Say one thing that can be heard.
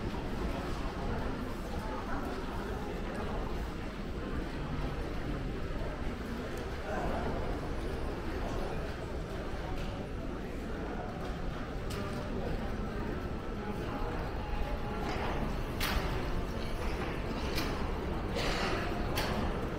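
A steady hubbub of a crowd fills a large, echoing hall.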